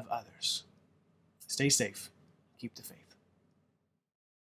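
A young man speaks calmly into a nearby microphone.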